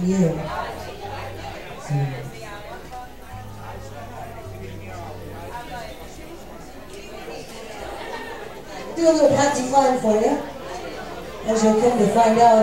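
An electric keyboard plays along.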